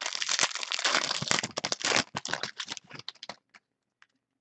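A plastic wrapper crinkles loudly as it is torn open.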